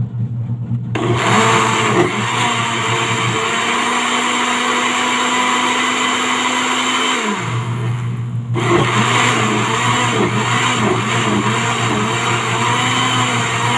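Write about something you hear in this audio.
Leafy greens churn and swish inside a blender jug.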